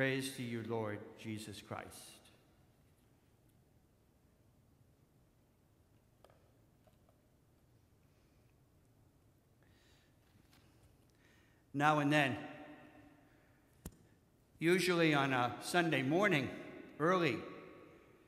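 An elderly man speaks calmly through a microphone, with pauses.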